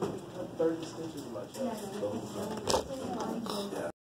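A sheet of paper rustles close by.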